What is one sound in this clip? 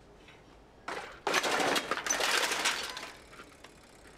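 A row of bicycles crashes and clatters to the ground.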